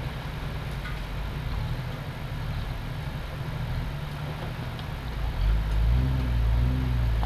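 A vehicle engine rumbles low and steady, growing louder near the end.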